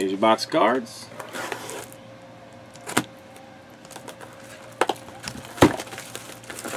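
A cardboard box knocks and slides on a table.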